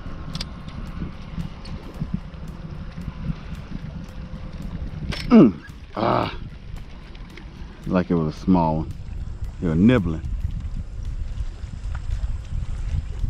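Wind rumbles steadily outdoors over open water.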